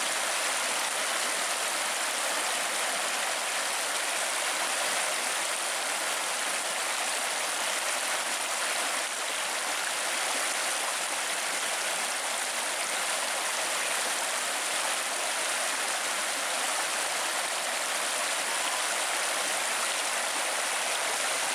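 A fast stream rushes and splashes over rocks close by.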